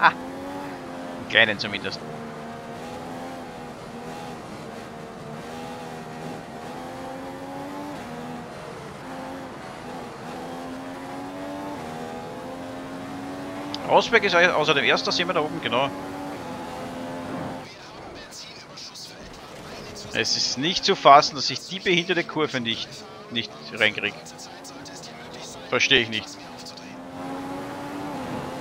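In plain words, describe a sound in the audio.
A racing car engine drones at high revs.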